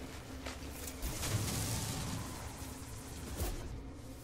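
A mining laser hums and crackles as it blasts rock.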